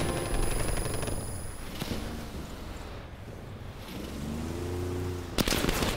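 A snowmobile engine drones as it drives over snow.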